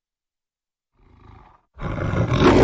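A lion growls softly.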